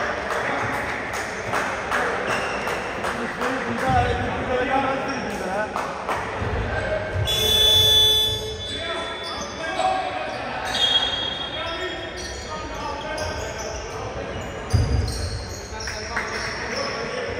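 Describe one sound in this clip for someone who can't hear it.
Voices of players and spectators echo through a large indoor hall.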